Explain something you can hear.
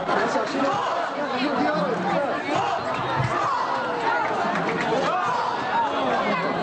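A dense crowd of men and women talks and shouts excitedly close by.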